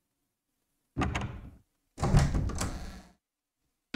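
A heavy wooden door creaks slowly open.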